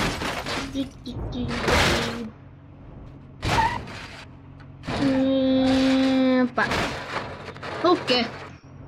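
A car crashes and tumbles with loud metal crunching and scraping.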